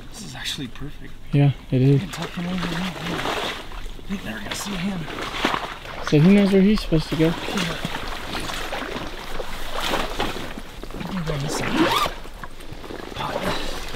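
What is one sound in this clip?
Water splashes softly around wading legs.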